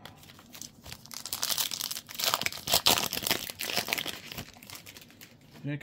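Foil wrapper crinkles and tears.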